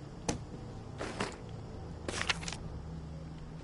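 A paper map rustles as it is unfolded and folded.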